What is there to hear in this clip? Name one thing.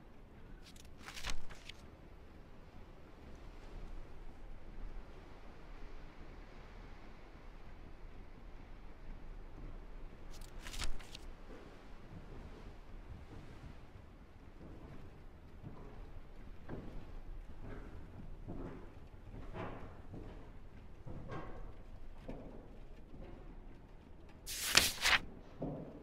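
A sheet of paper rustles sharply.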